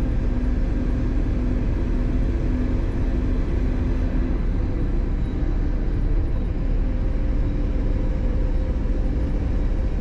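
Tyres roar on a highway road surface.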